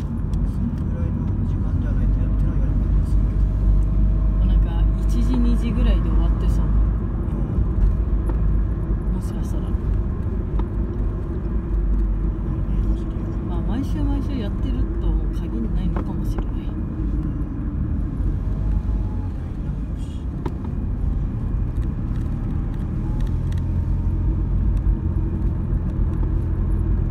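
A car engine hums from inside the car as it climbs a winding mountain road.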